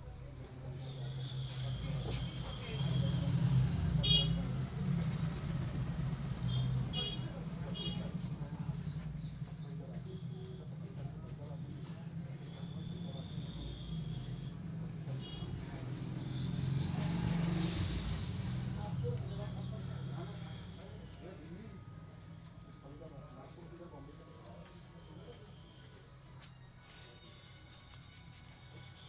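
Hands rub and press firmly on a bald scalp, close by.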